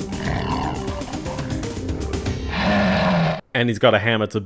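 A large monster growls and roars loudly.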